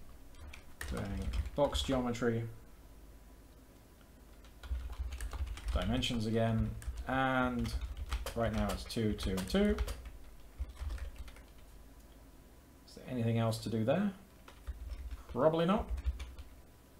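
Computer keys click as a man types.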